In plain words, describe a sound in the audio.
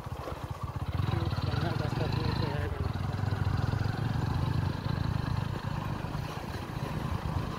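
A tractor engine chugs loudly nearby as it passes.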